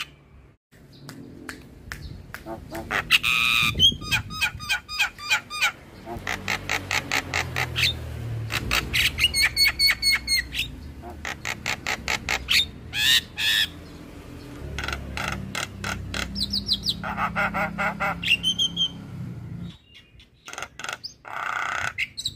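A bird sings loud, chattering calls and whistles close by.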